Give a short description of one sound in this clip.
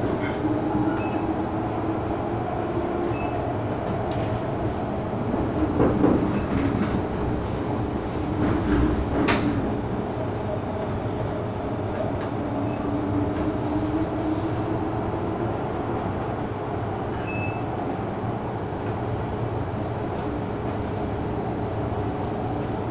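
A train rumbles and hums steadily along the tracks.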